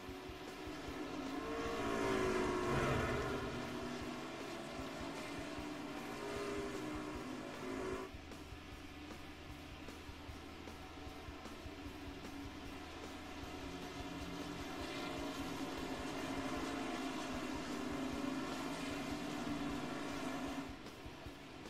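Race truck engines rise and fall in pitch as trucks pass close by.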